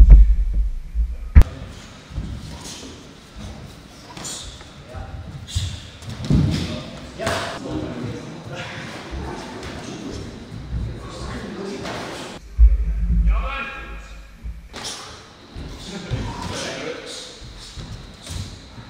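Bare feet squeak and shuffle on a wooden floor.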